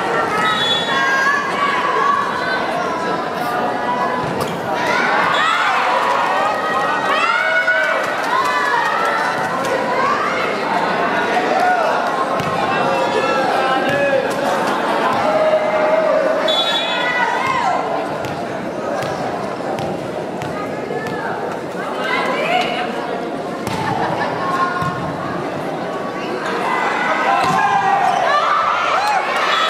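A large crowd cheers and screams in an echoing hall.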